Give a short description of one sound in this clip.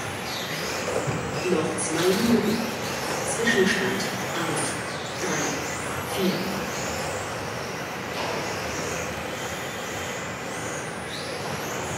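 Small electric radio-controlled cars whine as they race past in a large echoing hall.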